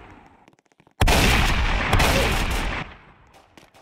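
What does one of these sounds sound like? Gunshots fire in a rapid burst and echo.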